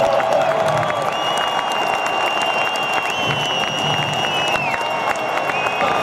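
Fireworks pop and crackle overhead.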